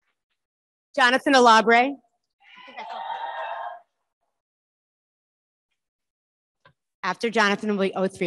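A young woman announces into a microphone.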